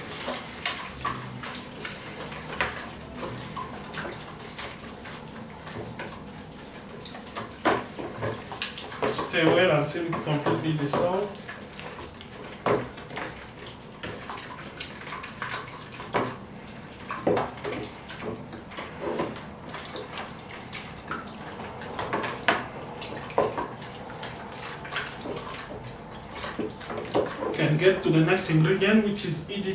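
A wooden stick stirs liquid in a plastic bucket, knocking and scraping against its sides.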